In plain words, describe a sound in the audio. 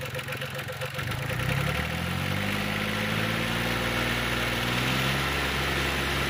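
A diesel engine revs up and settles into a louder, faster run.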